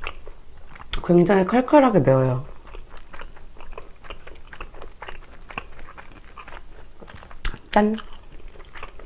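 A young woman speaks briefly and softly close to a microphone.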